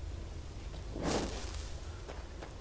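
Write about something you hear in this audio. A spell bursts out with a sharp whoosh.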